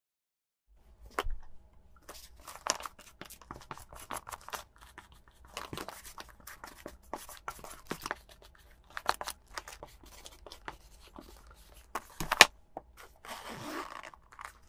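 Hands rustle and handle a handbag.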